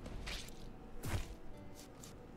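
A heavy hit lands with a thud.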